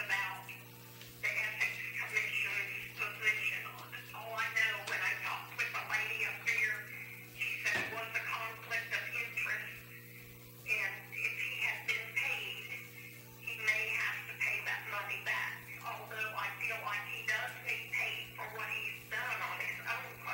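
A man speaks calmly, heard from a distance through a microphone.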